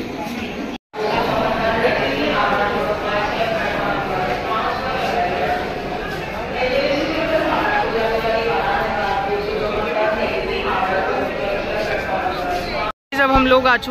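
A crowd of people chatters and murmurs in a large echoing hall.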